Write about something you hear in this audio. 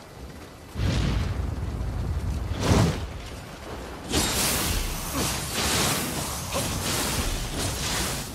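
A sword clashes and slashes against a monster.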